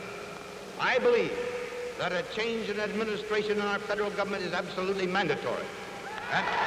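An older man speaks firmly into a microphone, heard through an old, crackly recording.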